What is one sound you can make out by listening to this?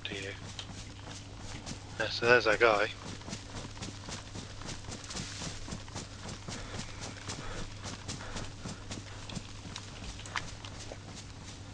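Footsteps crunch steadily through dry undergrowth.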